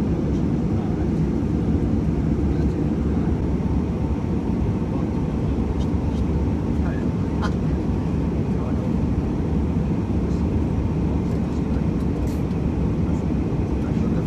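A steady low roar of jet engines fills an aircraft cabin.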